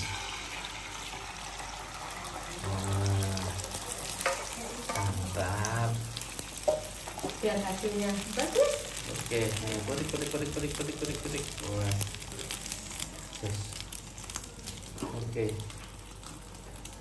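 Beaten egg pours into a hot pan and sizzles.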